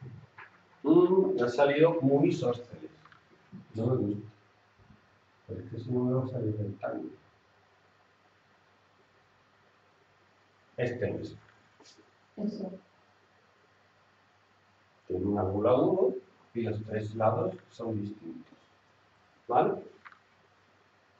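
A man speaks calmly into a headset microphone, in short bursts with pauses.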